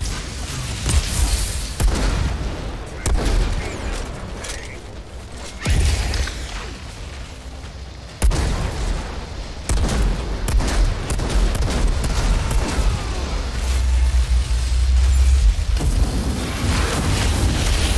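Explosions boom with deep rumbling roars.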